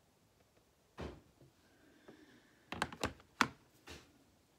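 A small board knocks against a wooden table.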